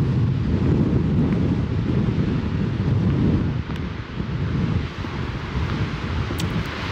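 Wind gusts and rumbles outdoors.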